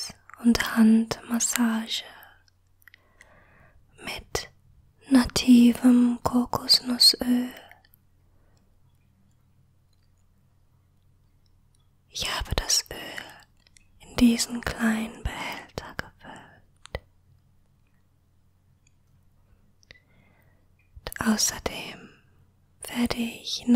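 A young woman speaks softly, close to a microphone.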